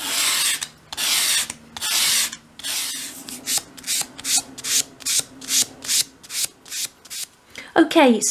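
Sandpaper rubs briskly back and forth over a surface.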